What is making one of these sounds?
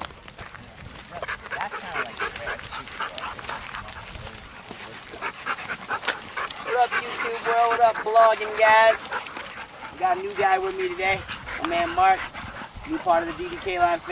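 A man talks loudly and with animation close by, outdoors.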